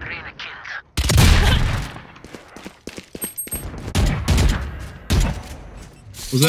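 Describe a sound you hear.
A rifle fires sharp shots in short bursts.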